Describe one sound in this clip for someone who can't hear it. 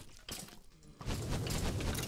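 A fire crackles.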